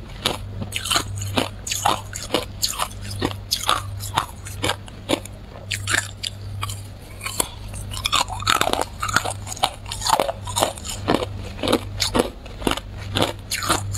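Ice crunches and cracks sharply between teeth, close up.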